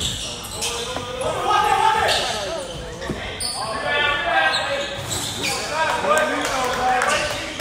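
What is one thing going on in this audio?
Young players shout to each other in a large echoing gym.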